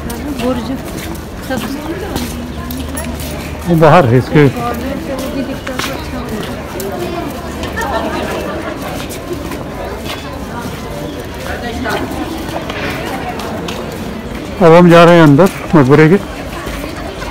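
A crowd of people talks in a low murmur outdoors.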